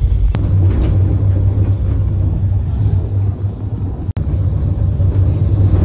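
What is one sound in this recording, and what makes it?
A bus roars past close by.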